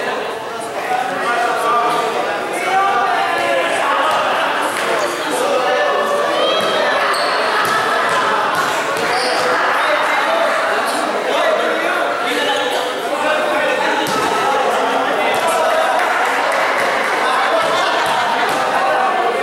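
A crowd of people chatter and shout in a large echoing court.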